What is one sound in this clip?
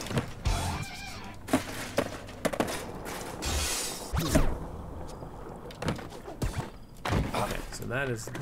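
Skateboard wheels roll and clack on concrete.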